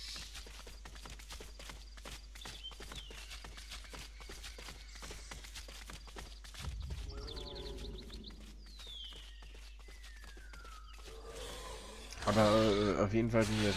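Quick footsteps patter through grass.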